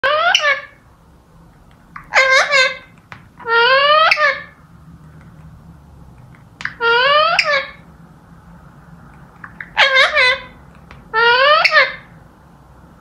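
Parrots call out in loud, shrill squawks, again and again.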